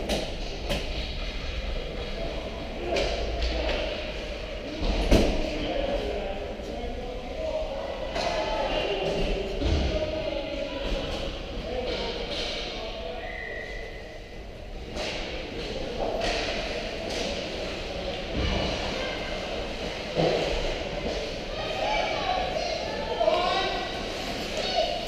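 Skate blades scrape and hiss on ice in a large echoing rink.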